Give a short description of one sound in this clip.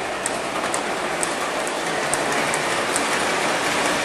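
Small train wheels click over rail joints.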